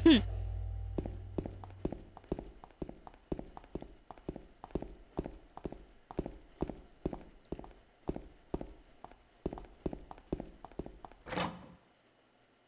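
Footsteps thud steadily on wooden stairs.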